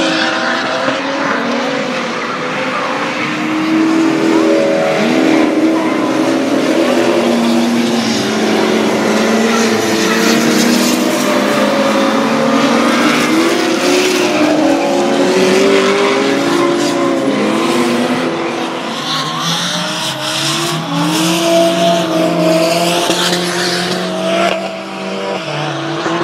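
Tyres screech and squeal.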